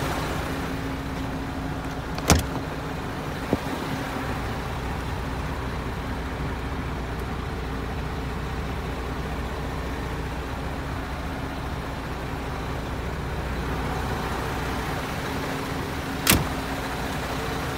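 A truck engine idles steadily nearby.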